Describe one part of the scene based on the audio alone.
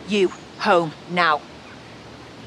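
A woman speaks with emotion close by.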